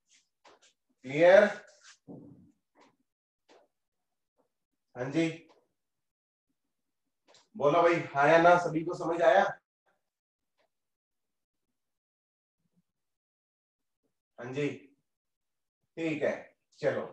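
A young man speaks in bursts with pauses between, close to a microphone, like a teacher explaining.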